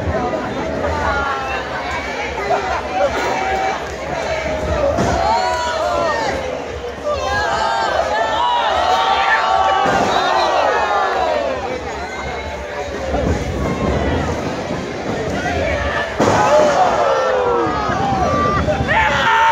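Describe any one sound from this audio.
A crowd of men and women shouts and cheers close by.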